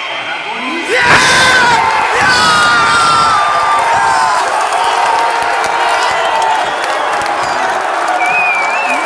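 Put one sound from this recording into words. A large crowd roars and cheers in excitement.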